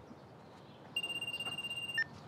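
A door buzzer sounds with a steady electronic tone.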